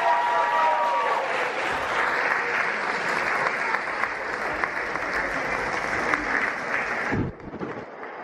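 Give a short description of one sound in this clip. An audience claps and cheers loudly in a large hall.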